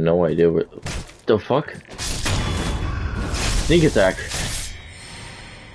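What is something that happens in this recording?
A sword slashes and clangs in a short fight.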